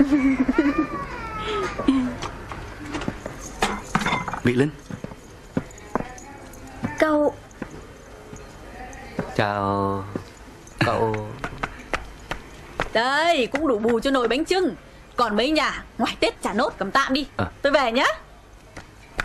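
A middle-aged woman speaks cheerfully and with animation.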